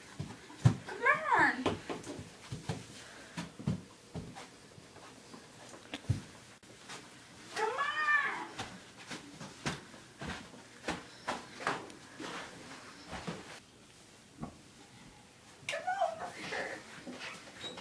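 A young girl shrieks loudly.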